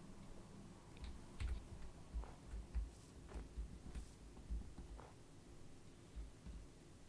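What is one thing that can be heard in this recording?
Footsteps thud softly on snow.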